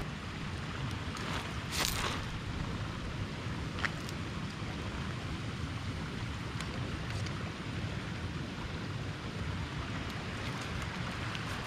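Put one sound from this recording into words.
A small wood fire crackles.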